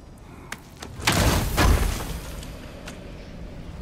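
A heavy chest lid creaks open with a loud thud.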